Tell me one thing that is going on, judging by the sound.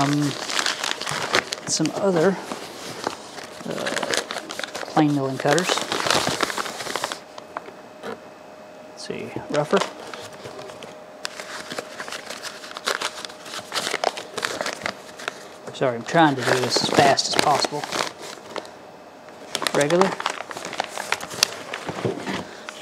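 Paper crinkles and rustles as it is unwrapped.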